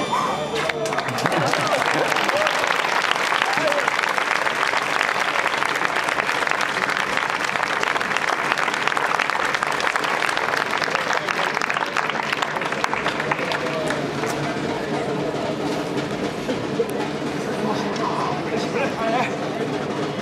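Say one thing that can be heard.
A large crowd claps and cheers.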